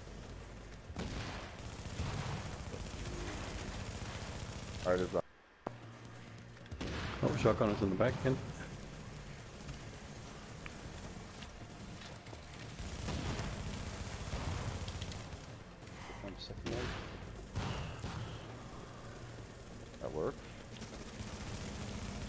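Gunfire rattles in rapid bursts.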